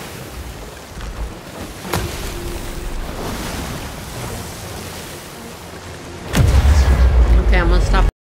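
Stormy waves crash and roll against a ship's hull.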